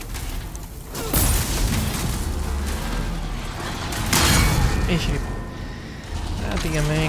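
Heavy metal weapons clash and thud.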